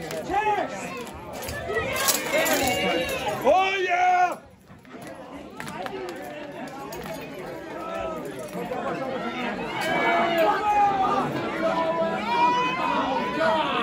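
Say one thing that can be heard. Several men talk and shout over each other close by.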